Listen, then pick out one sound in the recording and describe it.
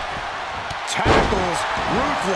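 A body slams heavily onto a ring mat with a loud thud.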